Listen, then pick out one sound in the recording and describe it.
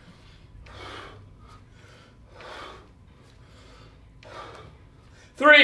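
A man breathes out sharply in short, rhythmic bursts.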